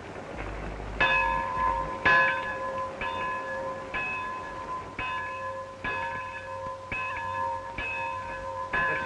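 A large bell rings loudly with repeated clangs.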